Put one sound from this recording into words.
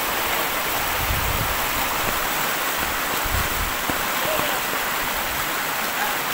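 Water rushes steadily along a narrow channel.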